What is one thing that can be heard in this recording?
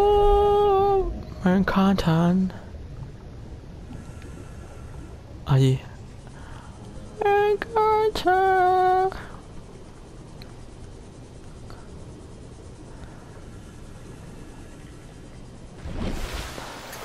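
A small submarine's motor hums steadily underwater.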